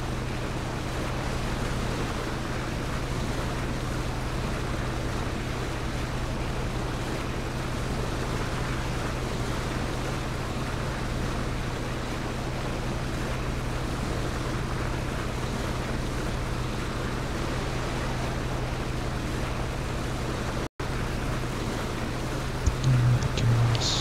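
Water rushes and splashes against a speeding boat's hull.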